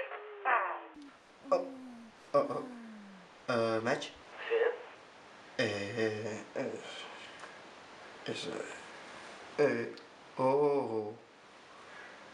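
A young man talks on a phone close by.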